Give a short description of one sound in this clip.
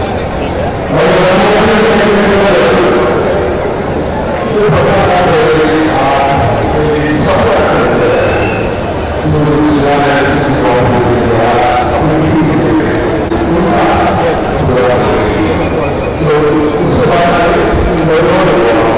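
An elderly man speaks into a microphone, heard through loudspeakers in an open stadium.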